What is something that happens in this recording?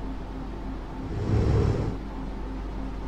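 A soft whoosh sweeps past.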